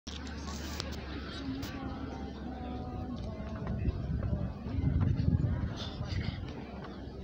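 A choir of women sings together outdoors.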